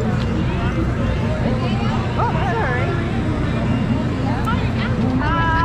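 A crowd murmurs outdoors all around.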